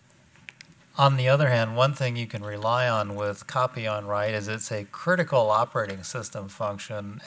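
An older man asks a question through a handheld microphone.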